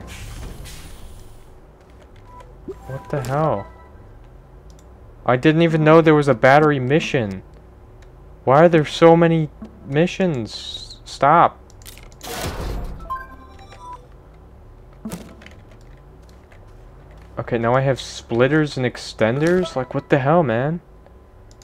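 Soft interface clicks and beeps sound.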